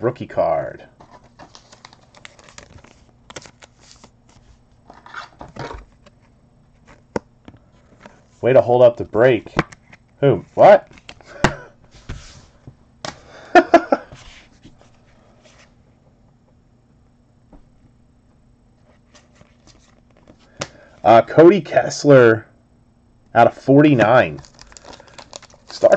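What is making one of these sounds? Trading cards rustle and slide between fingers.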